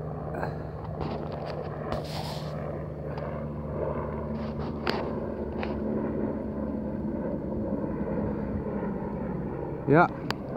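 A helicopter drones overhead in the distance.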